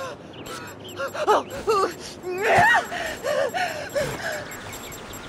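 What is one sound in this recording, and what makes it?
A man grunts loudly with effort.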